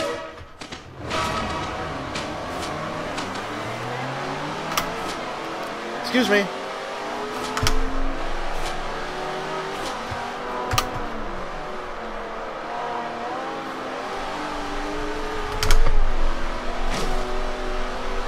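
A car engine roars and revs up through the gears.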